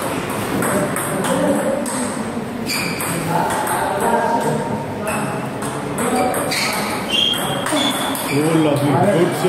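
A table tennis ball clicks back and forth between paddles and the table.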